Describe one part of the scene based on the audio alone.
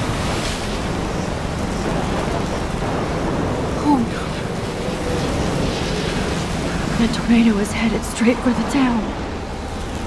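A tornado roars with howling wind.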